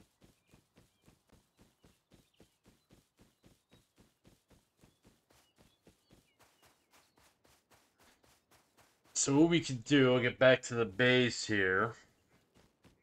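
Footsteps crunch steadily over sand and grass.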